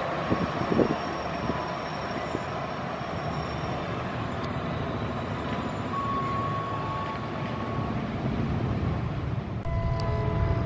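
A train rumbles slowly along the rails, moving away.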